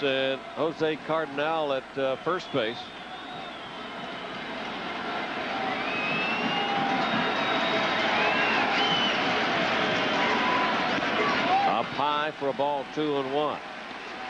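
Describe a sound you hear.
A large crowd murmurs and cheers in a stadium, slowly swelling louder.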